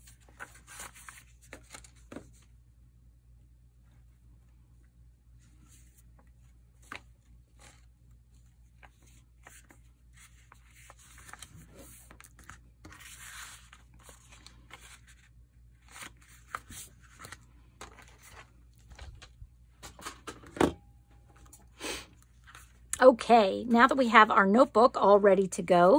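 Paper pages rustle and flap as they are handled.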